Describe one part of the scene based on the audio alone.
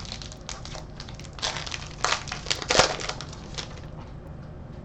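Foil wrappers crinkle and tear as packs are opened by hand.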